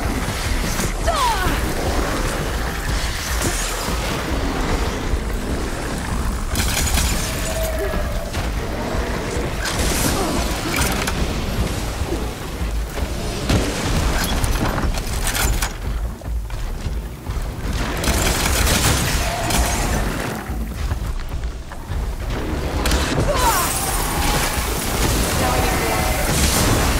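A large machine creature screeches and roars.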